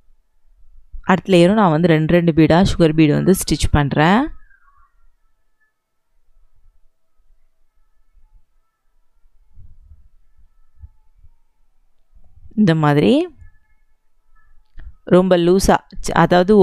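A needle and thread pull softly through fabric.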